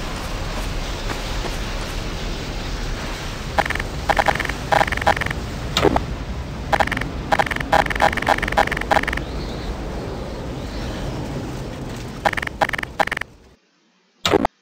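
A tornado roars with strong rumbling wind.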